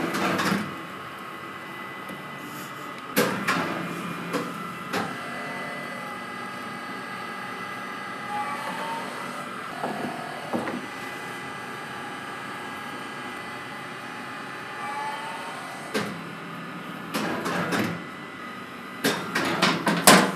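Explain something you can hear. A baking machine hums steadily.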